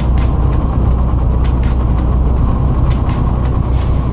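A truck passes by in the other direction with a rush.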